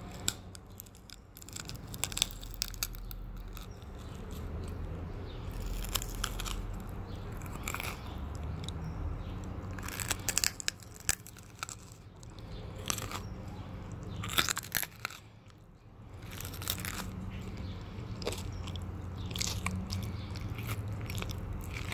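A person chews food with wet, smacking mouth sounds close to a microphone.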